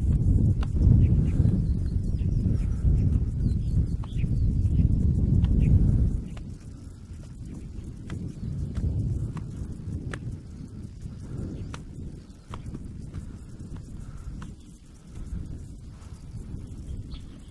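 Wind gusts outdoors, rumbling strongly and then easing.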